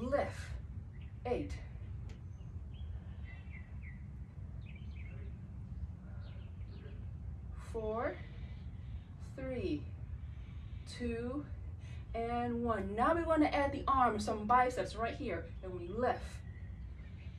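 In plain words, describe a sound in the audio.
A woman talks with animation, close by.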